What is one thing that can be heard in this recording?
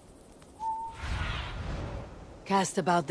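A large bird flaps its wings with a rushing whoosh.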